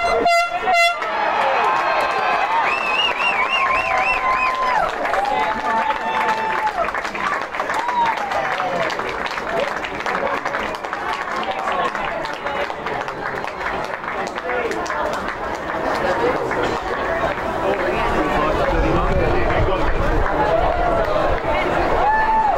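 Young men shout and cheer excitedly outdoors.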